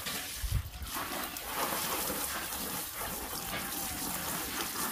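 Water pours from a hose into a tub of leaves.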